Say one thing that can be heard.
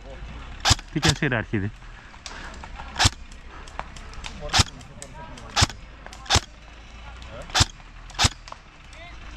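Rifle shots crack out one at a time outdoors, at an uneven pace.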